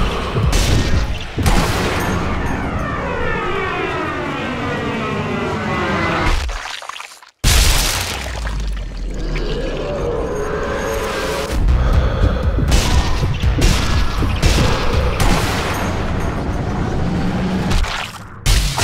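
A rifle shot cracks with a deep boom.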